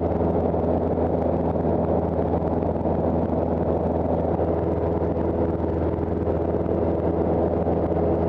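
A small plane's propeller engine drones loudly and steadily from inside the cabin.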